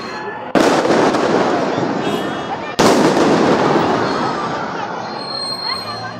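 Fireworks crackle and fizz in the air.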